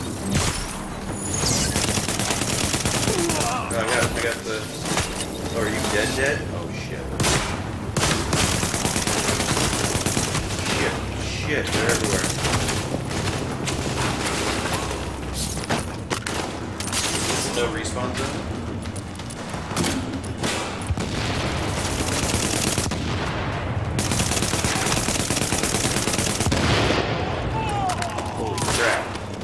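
Gunfire rattles in rapid bursts from a video game.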